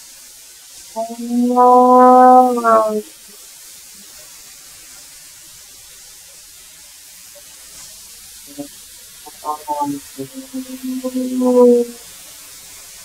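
A thickness planer whines loudly as a board feeds through it.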